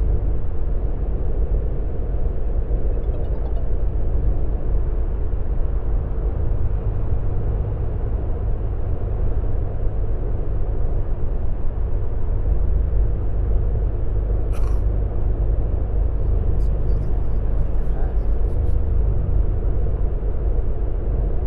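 A bus engine hums steadily while driving at speed.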